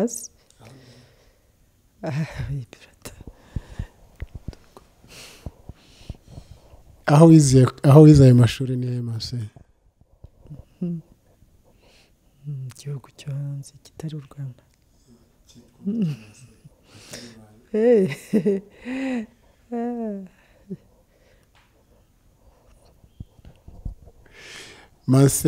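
An elderly woman speaks calmly and warmly into a microphone close by.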